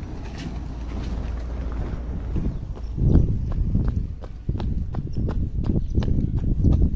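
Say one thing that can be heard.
Trainers thud on asphalt as someone runs.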